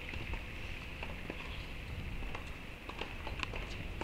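A tennis ball bounces repeatedly on a hard court.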